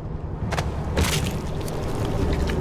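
A body is ripped apart with a wet crunch.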